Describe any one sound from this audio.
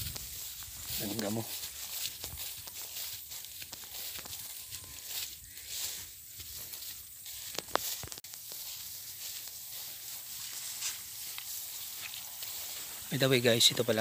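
Tall grass rustles and swishes as someone walks through it.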